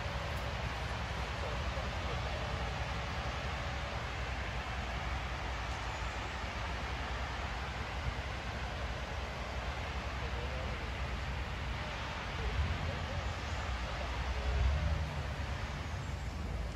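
Wind rumbles against the microphone in gusts.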